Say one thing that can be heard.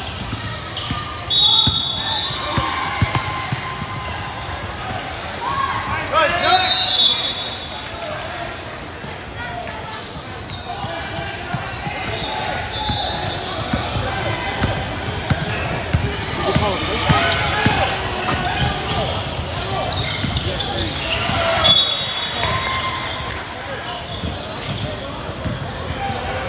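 A basketball bounces on a wooden floor, echoing in a large hall.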